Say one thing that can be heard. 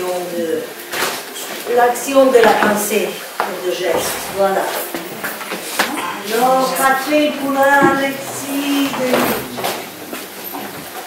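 A woman sings loudly in an echoing room.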